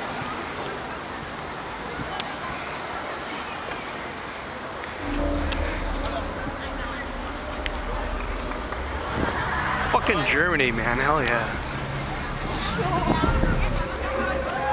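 A crowd murmurs outdoors in a busy square.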